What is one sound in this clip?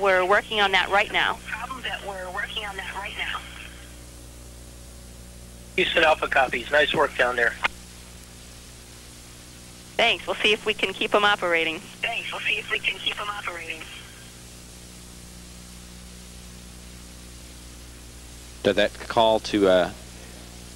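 A man speaks calmly over a crackly radio link, in short bursts with pauses.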